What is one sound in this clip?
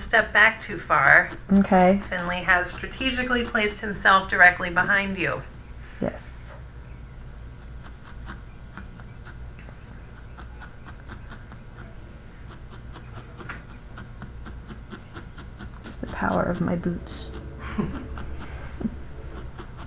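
A felting needle jabs into wool.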